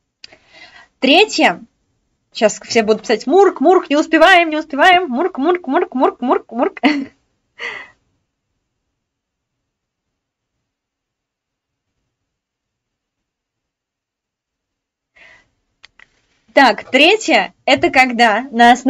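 A young woman speaks with animation close to a microphone, with long pauses.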